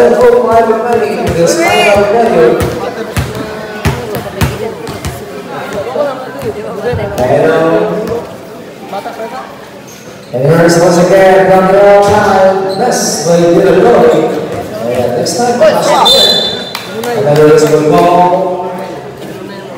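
Spectators shout and cheer nearby.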